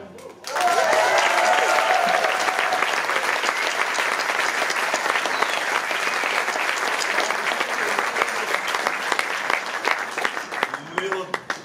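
An audience claps and cheers loudly in a large hall.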